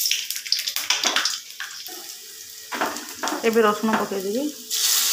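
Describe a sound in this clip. Oil sizzles and crackles in a hot pan.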